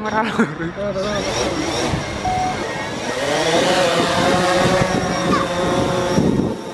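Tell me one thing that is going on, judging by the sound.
A drone's propellers whir loudly and rise in pitch as it lifts off.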